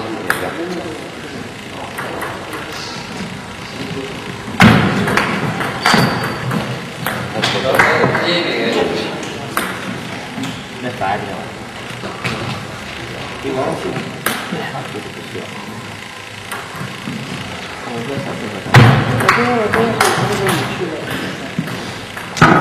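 A table tennis ball clicks back and forth between paddles and the table in a large echoing hall.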